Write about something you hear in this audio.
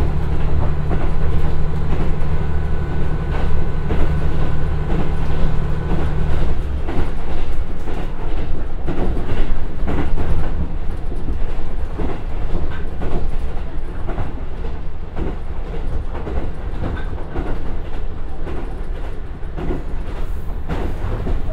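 A diesel train engine rumbles steadily, heard from inside the train.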